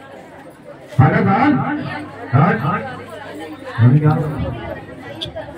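A man shouts loudly nearby in short bursts.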